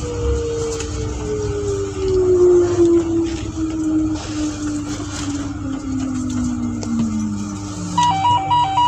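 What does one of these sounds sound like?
A train's electric motor whines and falls in pitch as the train slows to a stop.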